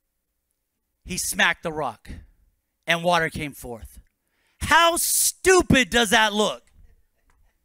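A man speaks with animation into a microphone through a loudspeaker.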